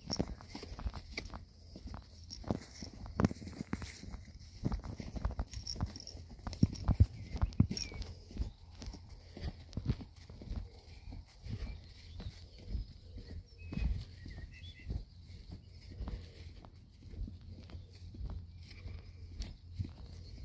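Footsteps swish through grass at a steady walking pace.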